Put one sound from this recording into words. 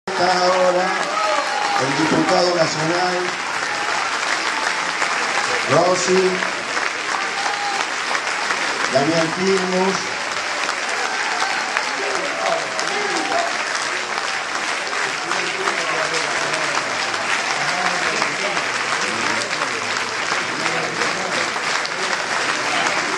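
Men and women in the crowd cheer and shout excitedly up close.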